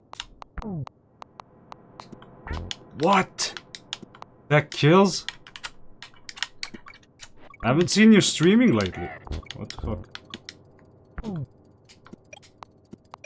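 Video game music plays with short plucked notes and falling bleeps.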